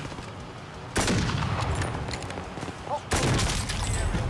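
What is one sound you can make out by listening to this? Rifle shots crack sharply.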